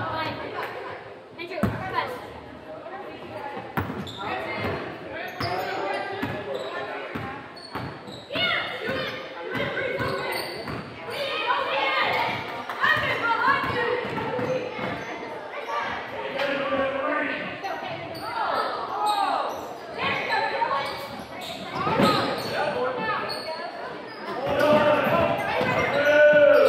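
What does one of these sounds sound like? Children shout and call out across an echoing gym.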